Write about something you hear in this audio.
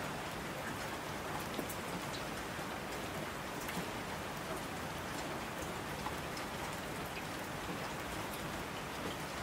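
Mountain streams rush and roar.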